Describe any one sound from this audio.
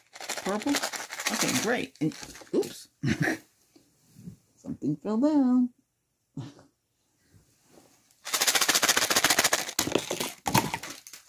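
Gloved hands rustle and crinkle close to a microphone.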